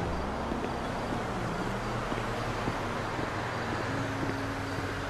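Footsteps tap on a brick path.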